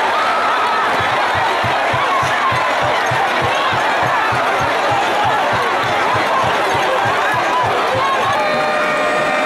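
A large crowd chants in rhythm.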